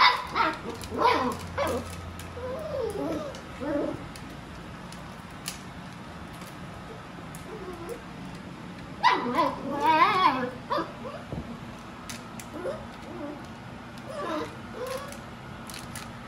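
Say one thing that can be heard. A broom head knocks and scrapes as puppies tug at it.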